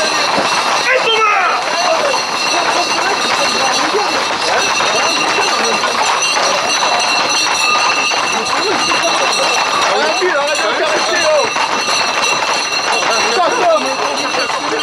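A group of horses clatters at a trot on asphalt.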